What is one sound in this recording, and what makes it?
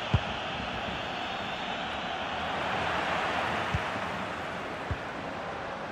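A football is kicked with sharp, dull thuds now and then.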